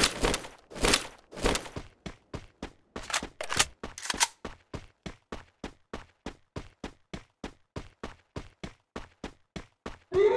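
Quick footsteps run across grass.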